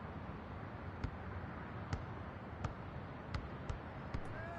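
A basketball bounces repeatedly on a hard court.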